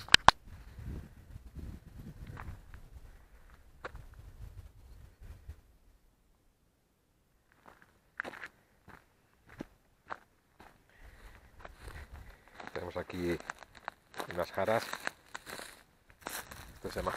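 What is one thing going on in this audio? Footsteps crunch on dry gravel and brush.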